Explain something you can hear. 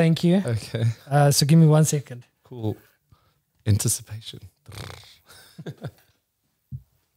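A man talks with animation into a microphone close by.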